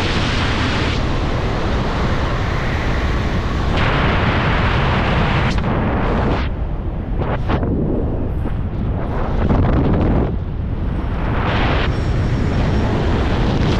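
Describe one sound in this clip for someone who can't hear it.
Strong wind rushes and buffets loudly past a microphone high in the open air.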